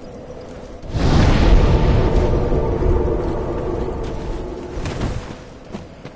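A fire flares up with a loud whooshing roar.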